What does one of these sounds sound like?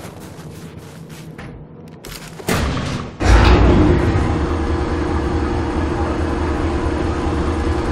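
Heavy boots clank on a metal grating.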